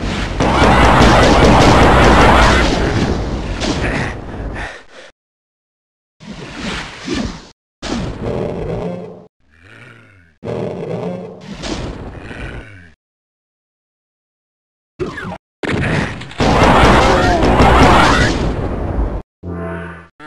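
A plasma gun fires rapid, crackling zapping shots.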